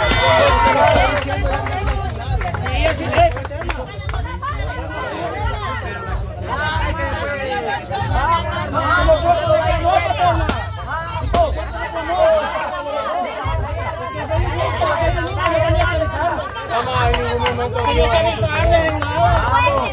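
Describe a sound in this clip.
A young man shouts encouragement nearby.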